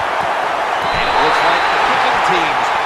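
Football players collide with thuds on a tackle.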